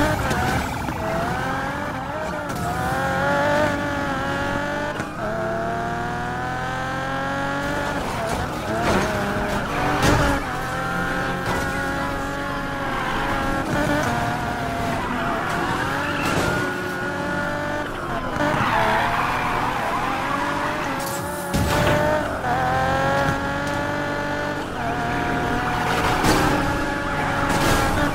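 A race car engine revs hard and whines through rising gears.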